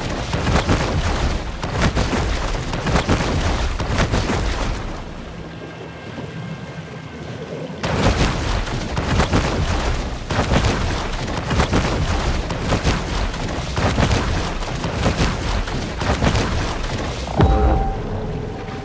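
Water splashes and churns as a shark swims fast at the surface.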